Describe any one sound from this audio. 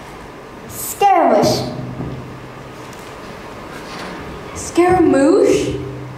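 A young girl shouts out lines with animation.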